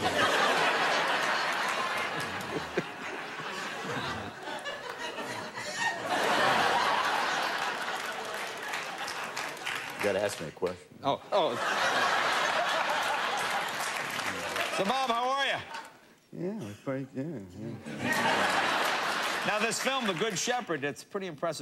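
A studio audience laughs and applauds loudly.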